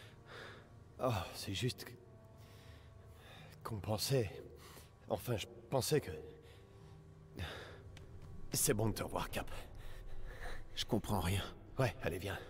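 A man talks into a close microphone in short bursts.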